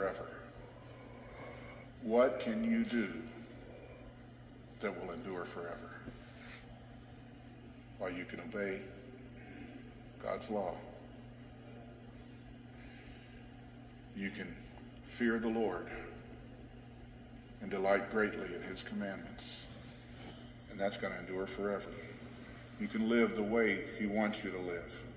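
A middle-aged man speaks slowly and deliberately over a microphone, with pauses between phrases.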